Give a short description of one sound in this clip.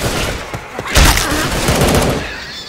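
A zombie snarls and growls nearby.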